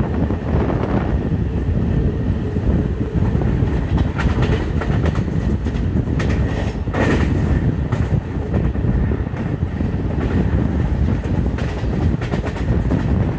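A train rumbles along fast on the rails.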